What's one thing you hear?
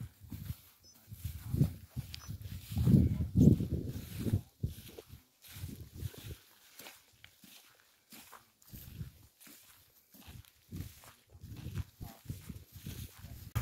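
Footsteps swish through tall dry grass.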